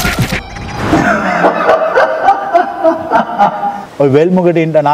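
A middle-aged man laughs heartily close by.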